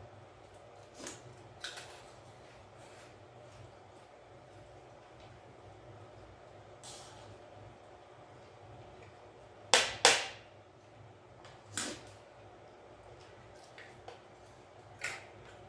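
Dishes and a spoon clink and knock now and then.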